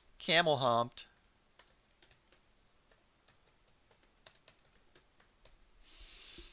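Keys on a keyboard click softly as someone types.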